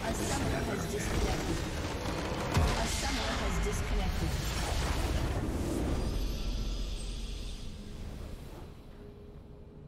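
A large magical structure bursts apart with a deep, roaring explosion.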